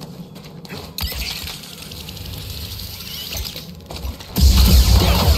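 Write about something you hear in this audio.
A zipline cable whirs as a figure slides along it.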